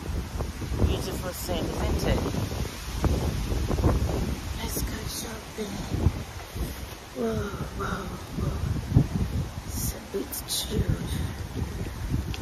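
A woman talks calmly and close up, outdoors in light wind.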